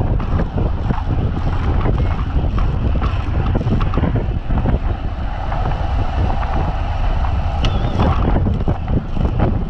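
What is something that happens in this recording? Wind buffets loudly past a moving bicycle.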